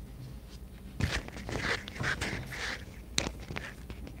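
A small microphone is picked up, rustling and bumping close by.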